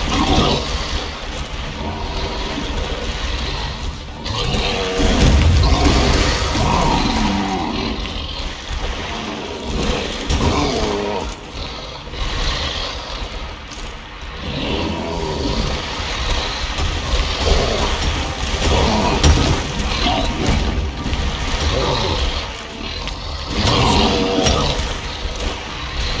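Swords slash and strike in a fight.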